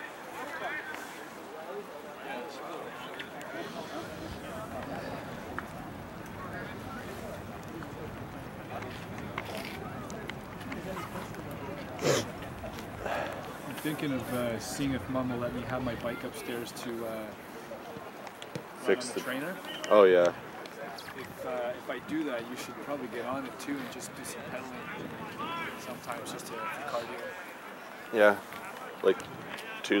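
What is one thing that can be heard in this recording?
Young men shout and call out to each other across an open field.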